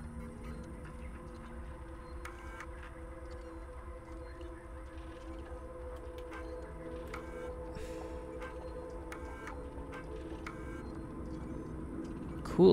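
A computer terminal gives soft electronic beeps.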